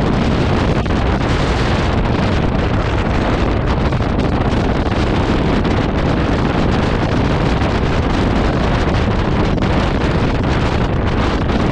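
A motorcycle engine hums steadily.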